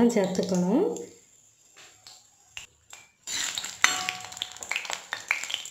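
Hot oil sizzles and crackles in a pan.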